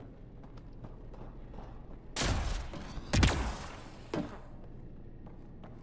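Heavy armoured footsteps clank on a metal floor.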